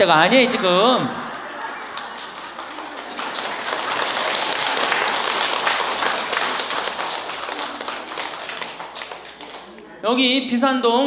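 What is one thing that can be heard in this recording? An audience of elderly women laughs and claps.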